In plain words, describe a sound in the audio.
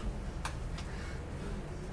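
A young man laughs softly behind his hand.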